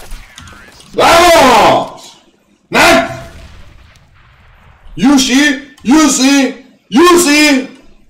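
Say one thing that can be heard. A young man shouts loudly and excitedly into a microphone.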